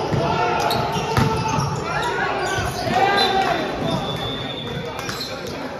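Sneakers squeak on the floor.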